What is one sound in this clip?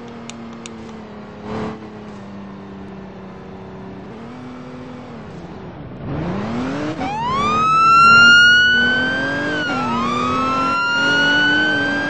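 A police car engine hums as the car drives.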